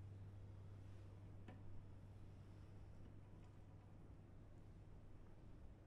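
A double bass plays low, deep notes.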